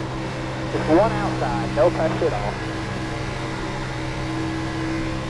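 A race car engine drones at a steady high pitch.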